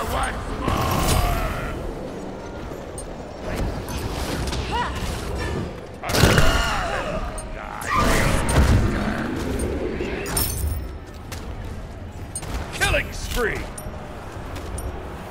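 Characters clash and hit each other with impacts.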